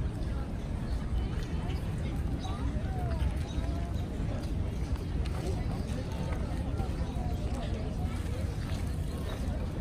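Footsteps pass on a paved path.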